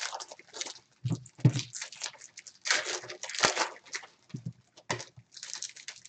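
Small thumps sound as packs are set down.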